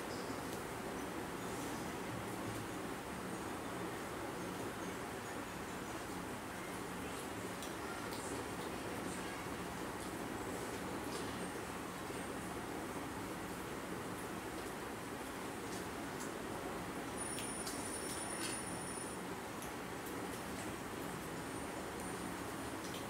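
Fingers and spoons clink softly against plates.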